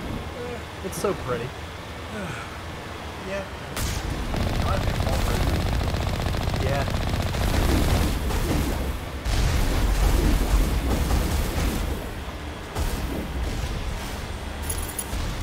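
Water splashes and sprays under rolling wheels.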